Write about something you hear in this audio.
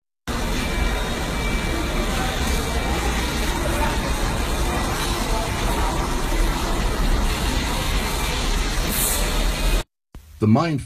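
A weight machine creaks and clanks steadily in a noisy room.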